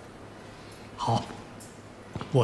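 An elderly man answers briefly in a calm voice.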